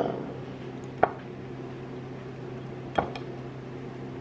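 A knife taps and scrapes against a plate.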